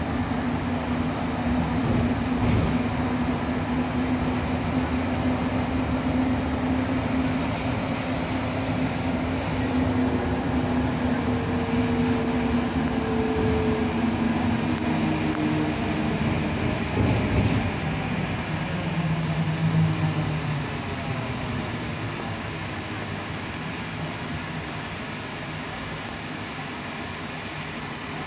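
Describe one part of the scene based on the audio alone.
A bus engine drones steadily and quietens toward the end.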